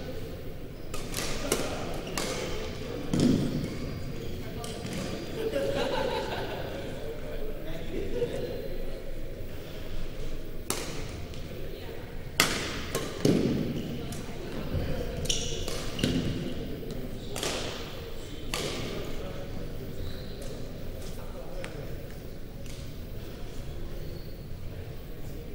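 Badminton rackets hit a shuttlecock with sharp pings.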